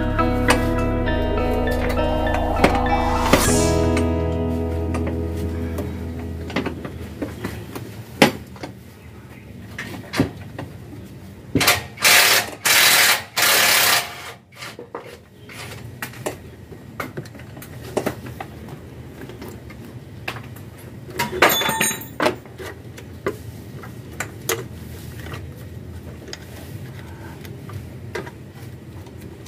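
Metal parts click and clank as hands work on an engine.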